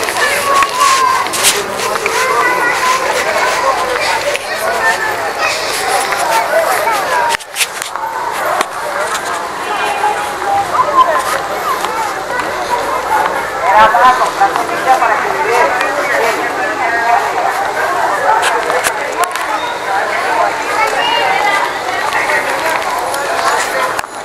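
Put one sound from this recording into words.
A crowd of men and women chatter and shout nearby, outdoors in an open square.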